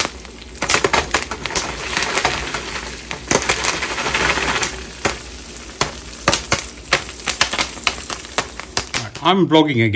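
Metal tongs click and clatter against a stove grate and foil.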